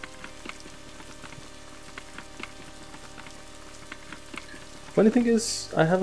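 A horse's hooves clop steadily on the ground.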